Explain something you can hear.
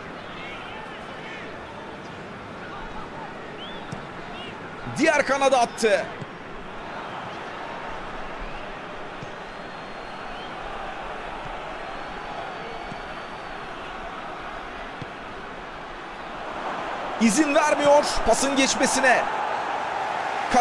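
A large stadium crowd murmurs steadily and swells louder near the end.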